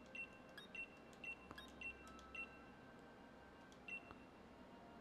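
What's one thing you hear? Short electronic menu blips sound several times.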